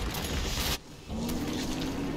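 A large monster roars.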